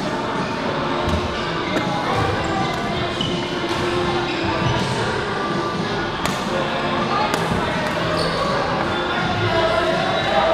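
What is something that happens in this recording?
Many people chatter and call out in a large echoing hall.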